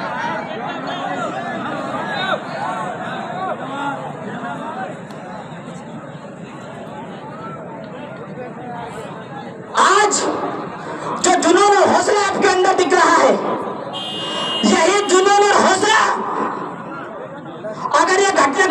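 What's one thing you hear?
A young man speaks forcefully into a microphone through loudspeakers outdoors.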